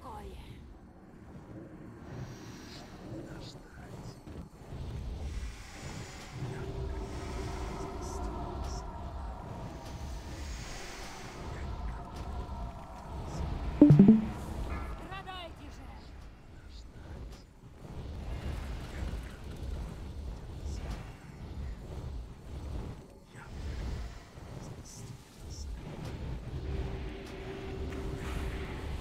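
Magic spells whoosh and crackle in a busy battle.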